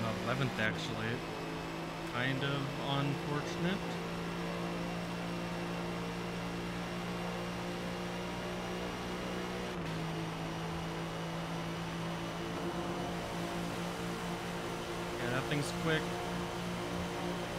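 A racing car engine drones loudly at high speed.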